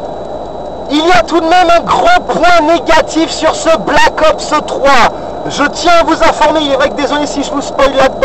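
A man talks with animation close by inside a car.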